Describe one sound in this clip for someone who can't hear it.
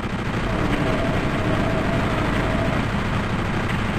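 Barrels explode with heavy booms.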